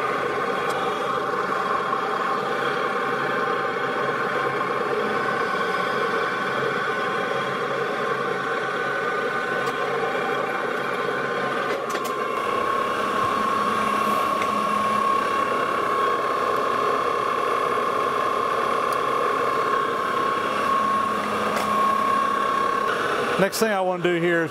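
A lathe motor whirs steadily.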